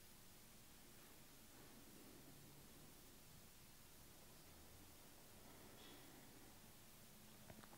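A woman breathes slowly and deeply, close by.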